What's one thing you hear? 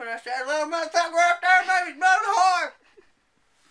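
A young man sings loudly and playfully close by.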